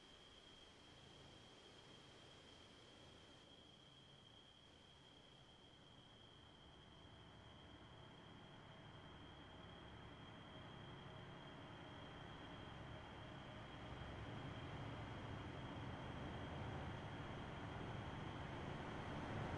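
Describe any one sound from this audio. A train rumbles in the distance, growing steadily louder as it approaches.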